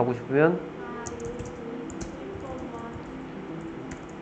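Keys on a keyboard click as someone types.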